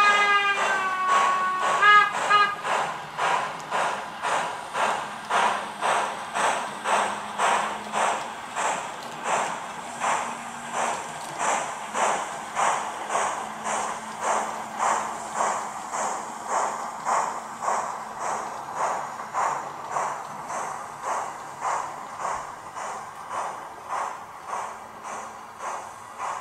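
A model steam locomotive chuffs in a steady, slowing rhythm.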